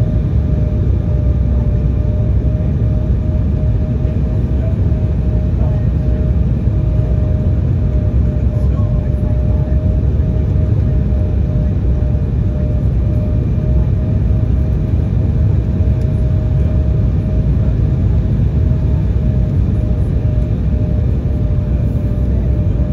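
Jet engines roar steadily with a low rumble inside an airliner cabin.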